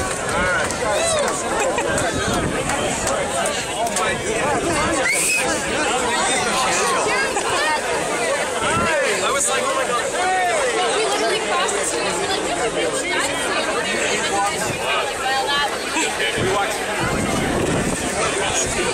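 A large crowd of men and women chatters loudly all around, outdoors.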